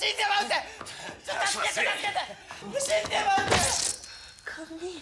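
Bodies thud and scuffle on a floor in a struggle.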